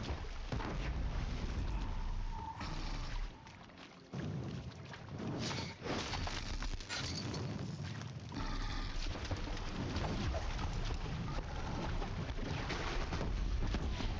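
Explosions boom in a video game battle.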